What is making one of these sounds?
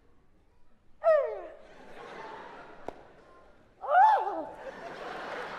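A young man shouts loudly on a stage.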